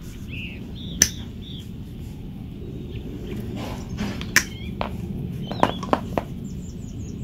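Metal pliers click and clack against each other.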